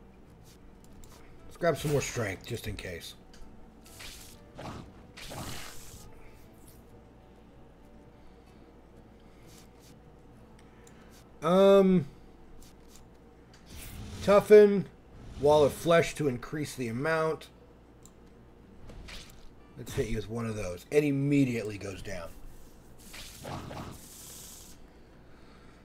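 Cards flip and slide with soft swishing sounds.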